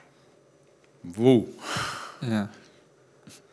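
An elderly man speaks with animation into a nearby microphone.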